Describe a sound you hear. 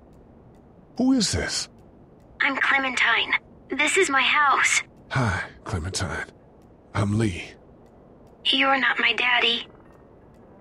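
A young girl speaks through a crackly walkie-talkie.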